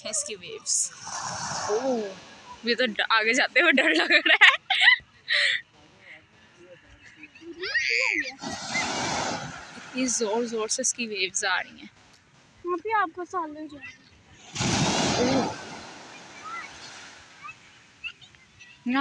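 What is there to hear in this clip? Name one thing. Small waves wash and hiss onto a beach in bursts.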